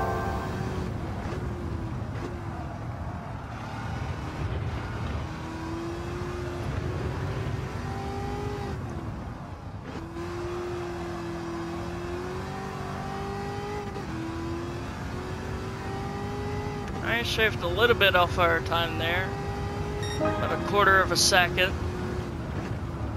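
A racing car engine drones and rises and falls in pitch as it speeds up and slows for bends.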